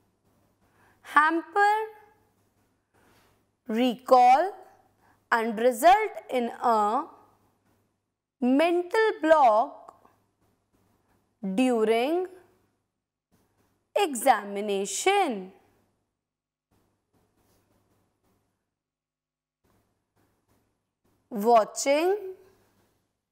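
A woman speaks with animation into a close microphone, in short bursts with pauses.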